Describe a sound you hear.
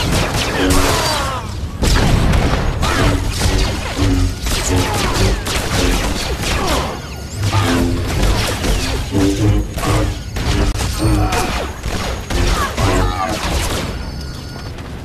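Lightsabers hum and clash in a fast fight with blasts and impacts.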